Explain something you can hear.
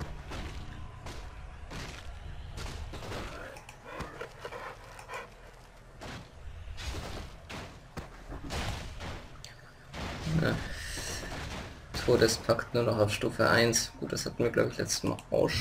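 Weapons clash and strike in a fantasy battle.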